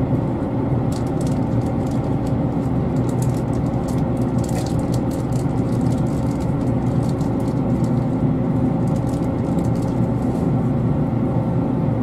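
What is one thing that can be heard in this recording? Train wheels click and rattle on the rails.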